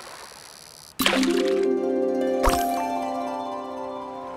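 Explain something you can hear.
A bright, musical game chime rings out suddenly and slowly fades.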